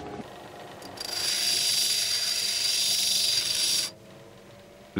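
A grinding wheel whirs against a stone with a high hiss.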